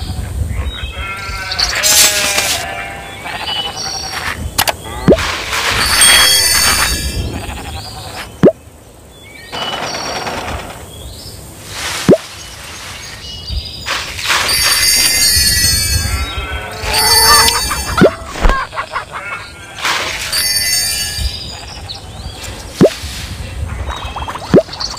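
Game chimes and pops ring out as crops are harvested.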